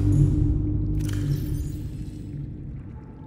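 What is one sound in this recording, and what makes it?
A locker door slides open with a soft whoosh.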